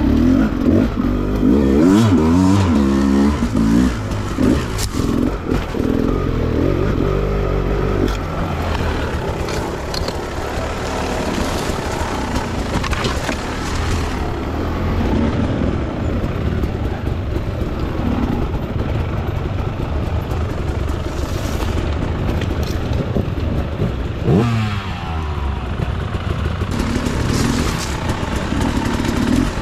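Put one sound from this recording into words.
A dirt bike engine revs and sputters close by.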